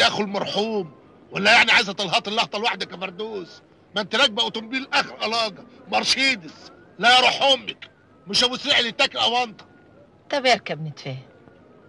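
A man speaks forcefully and urgently, close by.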